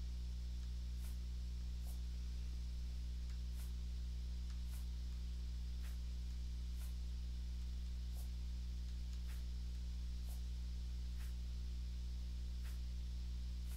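Soft menu clicks tick one after another at a steady pace.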